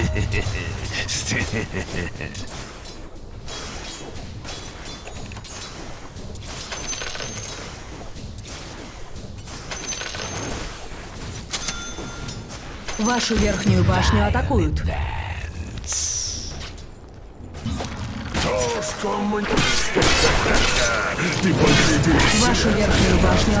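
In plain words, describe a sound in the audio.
Game fighting sounds clash and crackle with spell effects.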